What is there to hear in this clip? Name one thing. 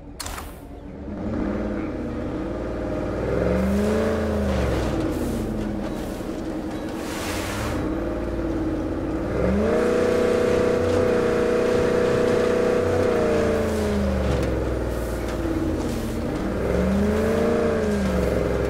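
A truck engine revs and roars, rising and falling in pitch.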